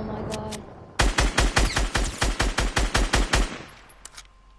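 An assault rifle fires a rapid burst of shots.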